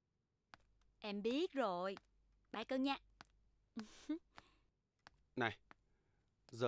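A young woman talks cheerfully on a phone, close by.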